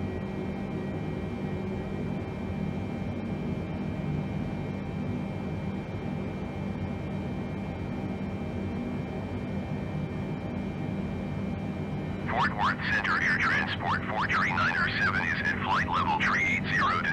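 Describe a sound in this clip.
A jet engine drones steadily in the background.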